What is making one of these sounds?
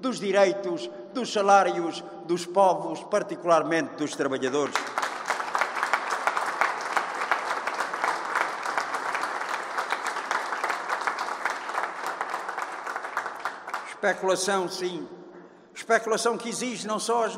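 An elderly man speaks firmly into a microphone.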